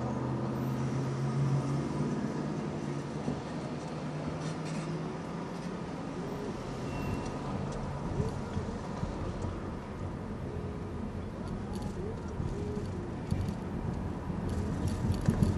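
Tyres rumble over the road surface.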